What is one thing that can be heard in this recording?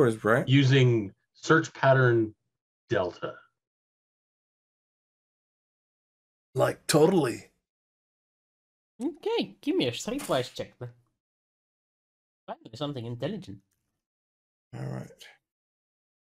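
Men speak with animation over an online call.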